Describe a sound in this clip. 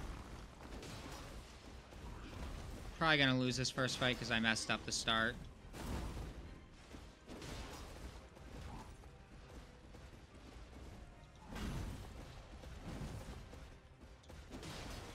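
Heavy weapons clash and thud in a fight.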